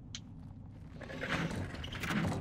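A wet fleshy mechanism squelches as a hand presses it.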